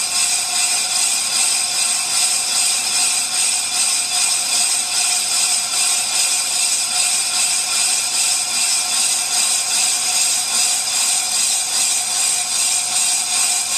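A lathe cutting tool scrapes steadily against a spinning metal disc with a harsh, high screech.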